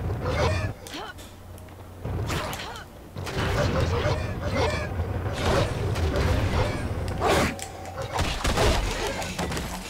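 Fiery blasts burst and crackle.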